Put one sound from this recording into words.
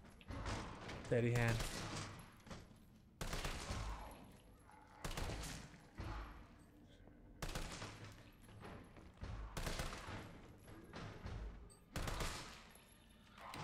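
A gun fires single loud shots, one every second or two, echoing down a hallway.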